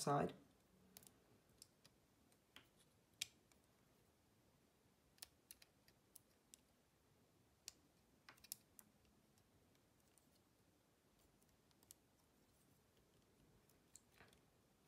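Small plastic toy bricks click and snap softly as they are twisted and fitted together.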